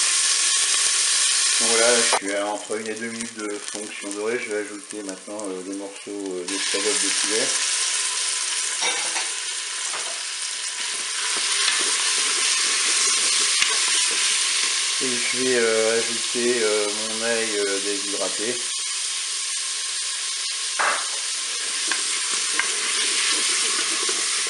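Food sizzles in hot oil.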